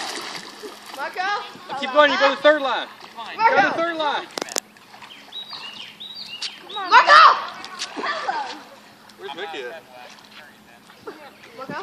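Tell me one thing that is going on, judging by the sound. Water churns and splashes as a child swims.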